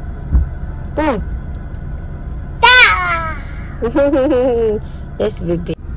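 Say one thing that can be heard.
A toddler squeals and babbles happily up close.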